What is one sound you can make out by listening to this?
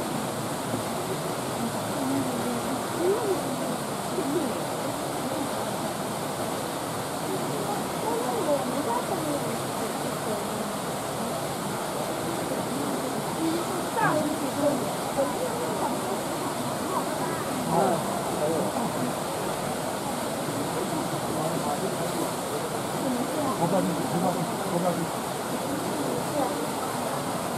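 Water laps gently in a pool.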